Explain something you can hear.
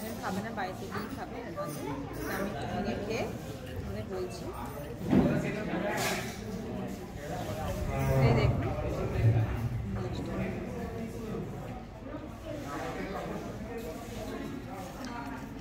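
Forks and knives clink against plates.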